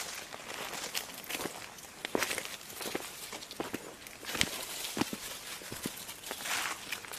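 Footsteps crunch and rustle on dry leaves.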